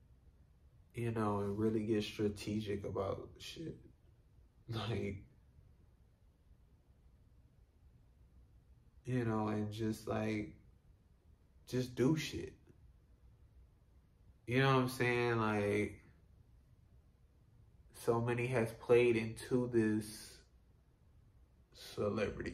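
A young man talks calmly and close by, in short bursts with pauses.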